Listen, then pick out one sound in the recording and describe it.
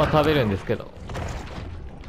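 A shark bites into its prey with a wet crunch.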